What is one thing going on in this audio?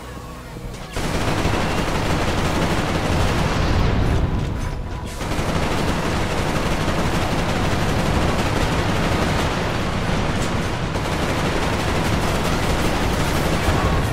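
Automatic gunfire rattles in rapid bursts, echoing in a hard-walled hall.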